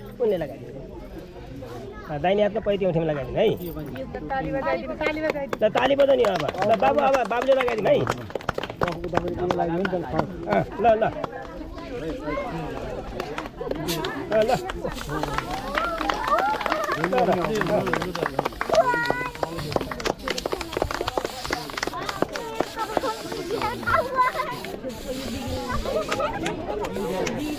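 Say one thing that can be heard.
A crowd of men and women chatters and talks close by, outdoors.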